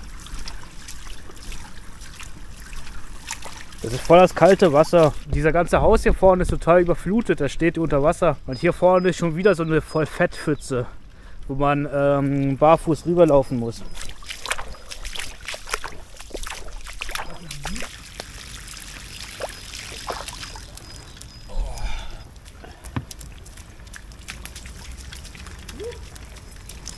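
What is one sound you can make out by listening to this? Bare feet splash through shallow water.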